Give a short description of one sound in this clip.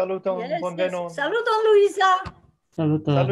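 An elderly woman speaks cheerfully over an online call.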